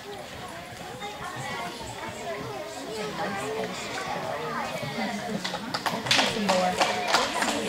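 A gymnastics bar creaks and thumps as a gymnast swings on it.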